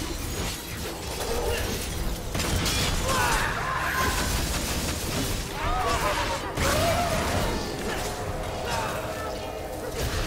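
Blades slash and clash in fast fighting.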